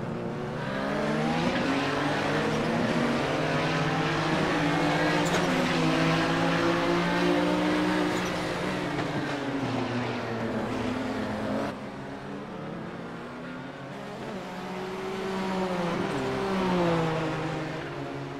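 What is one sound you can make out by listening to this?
A racing car engine screams at high revs, its pitch rising and falling through gear changes.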